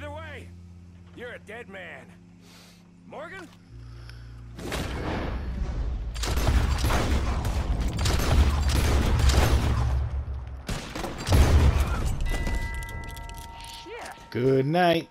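A man speaks in a low, threatening voice.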